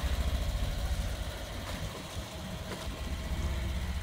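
Water splashes as a vehicle drives into a lake.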